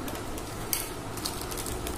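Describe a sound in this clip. A plastic packet crinkles in a hand.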